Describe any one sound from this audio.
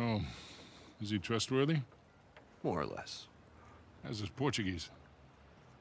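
A middle-aged man speaks calmly and quietly.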